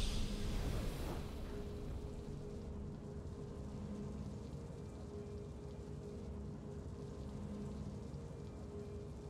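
Soft, triumphant video game music plays quietly.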